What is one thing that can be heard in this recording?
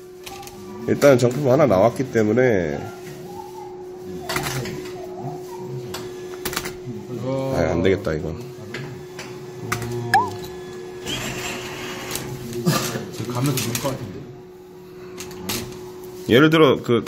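A claw machine hums steadily.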